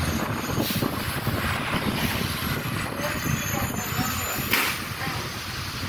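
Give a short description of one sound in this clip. A bus engine rumbles steadily as the bus drives along a wet street.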